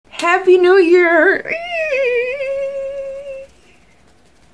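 A young woman sings out a long, drawn-out note close to a microphone.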